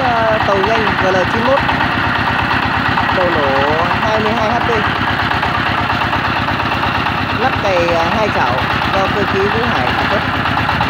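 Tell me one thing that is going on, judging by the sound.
A man talks loudly over the engine noise.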